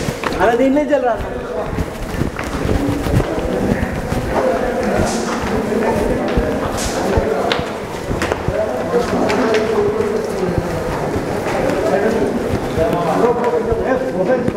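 Several men shout and talk excitedly close by.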